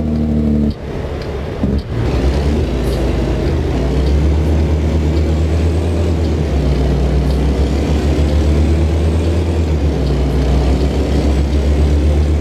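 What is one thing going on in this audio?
A truck's engine rumbles low and steady as it drives.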